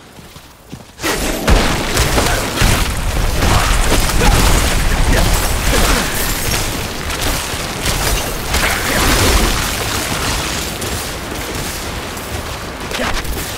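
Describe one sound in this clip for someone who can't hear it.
Ice spells crack and shatter in loud bursts.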